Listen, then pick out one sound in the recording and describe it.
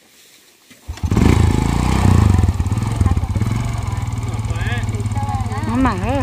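A small motor scooter engine starts and pulls away.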